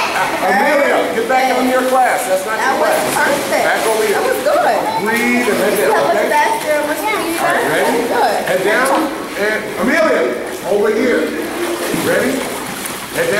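Water splashes as swimmers kick.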